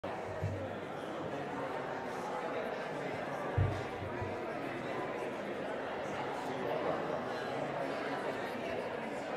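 A large audience murmurs and chats in a big echoing hall.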